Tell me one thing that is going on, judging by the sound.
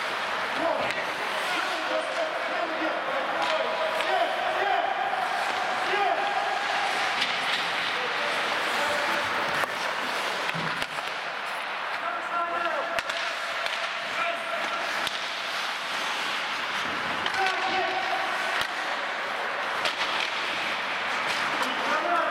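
Skates scrape and hiss across the ice in a large echoing hall.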